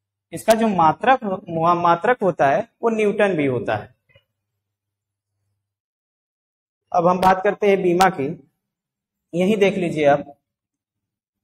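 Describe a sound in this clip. A man speaks calmly, explaining.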